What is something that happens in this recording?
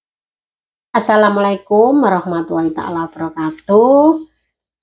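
A middle-aged woman speaks calmly and close by.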